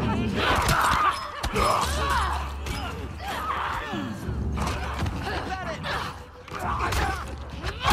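Blows thud against a body in a struggle.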